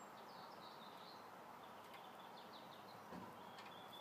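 A wire fence rattles softly as a cat paws at it.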